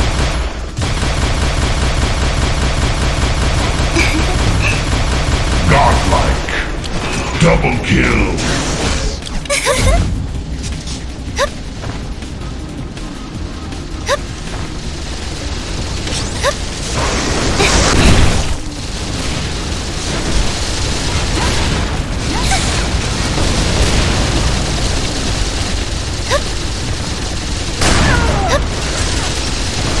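Video game weapons fire with buzzing beams and loud blasts.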